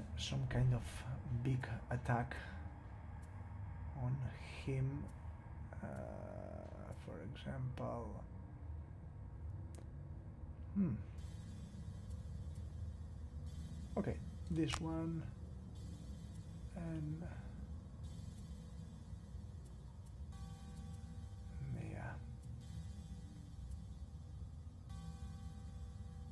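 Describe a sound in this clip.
Soft interface clicks sound as menu options are picked.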